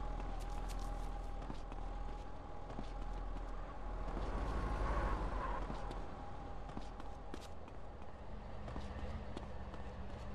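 Footsteps run across hard ground.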